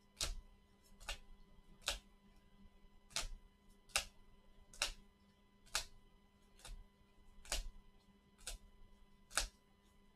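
Plastic card sleeves rustle and click as gloved hands flip through a stack of cards.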